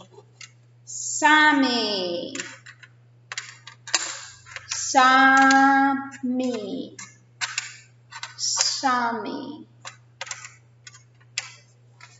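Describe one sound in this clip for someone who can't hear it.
Small cards tap and click as they are placed.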